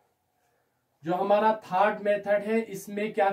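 A man speaks calmly and clearly, as if teaching.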